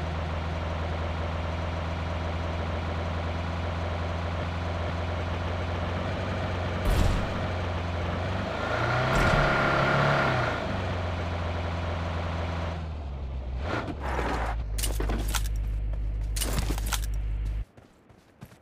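A car engine drones steadily as the car drives over rough ground.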